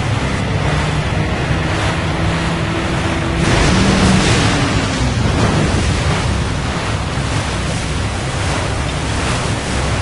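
Water splashes and sprays against a boat's hull.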